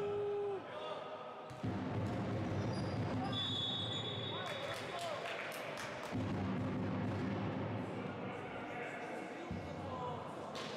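Sneakers squeak on a hard gym floor, with an echo.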